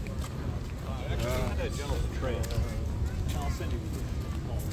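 Two men talk casually as they walk past close by.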